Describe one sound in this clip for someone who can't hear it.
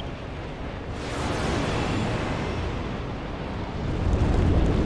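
A magical shimmering whoosh sweeps down and fades.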